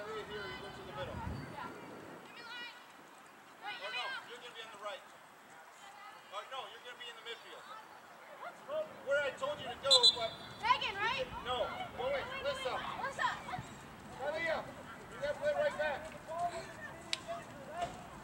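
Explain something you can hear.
Young women call out and shout to each other across an open field outdoors.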